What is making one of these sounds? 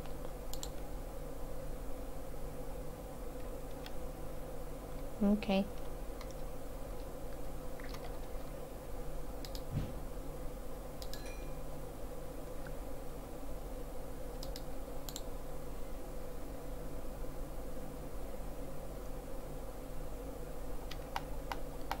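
A furnace fire crackles softly.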